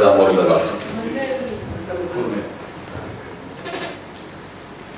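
A man speaks calmly into a microphone in an echoing hall.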